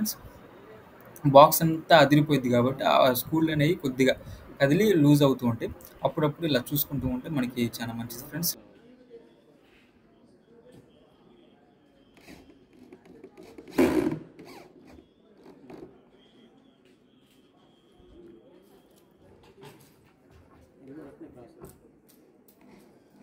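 A power screwdriver whirs briefly.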